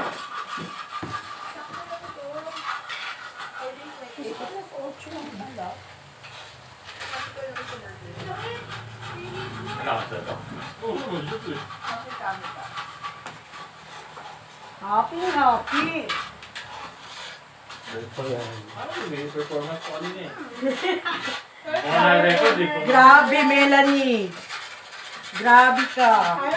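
Meat sizzles on a hot pan.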